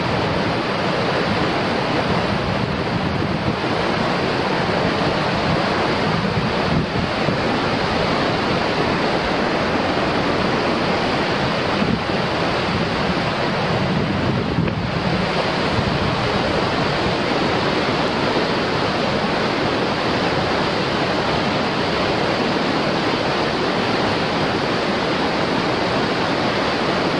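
A glacial river rushes and roars close by.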